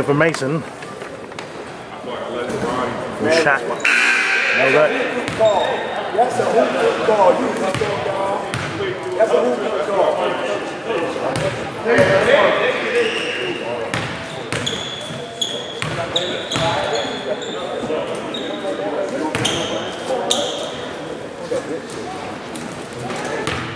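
A crowd of spectators chatters in a large echoing gym.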